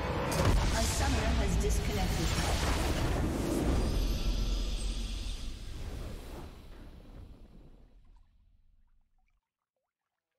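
A triumphant victory fanfare swells and slowly fades away.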